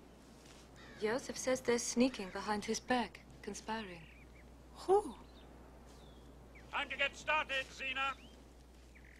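An older woman answers calmly.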